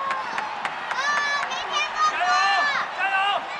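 A man shouts loudly through cupped hands.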